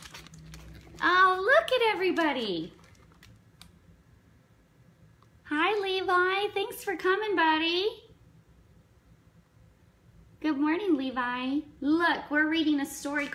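A young woman reads aloud in a lively, sing-song voice close by.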